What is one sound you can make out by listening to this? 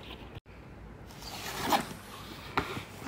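A boxed item slides out of a cardboard sleeve.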